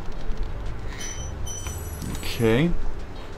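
A bright game chime rings as a gem is picked up.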